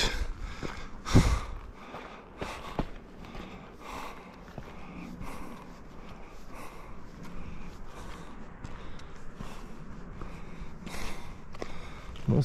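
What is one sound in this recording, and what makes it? Footsteps crunch on a stony path.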